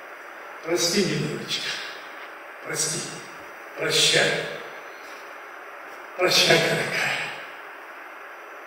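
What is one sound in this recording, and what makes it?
An elderly man speaks slowly through a microphone in a large echoing hall.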